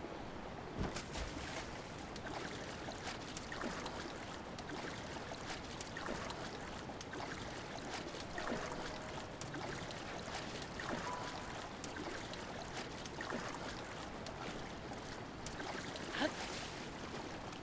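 Water sloshes and splashes with swimming strokes.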